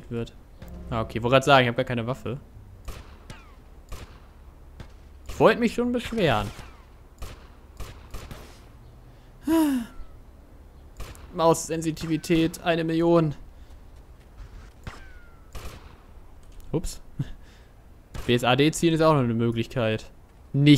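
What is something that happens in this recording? A gun fires single shots in quick succession.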